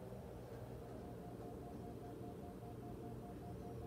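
Faint music plays from a television.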